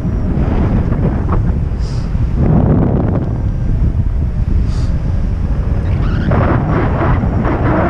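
Wind rushes and buffets loudly past the microphone.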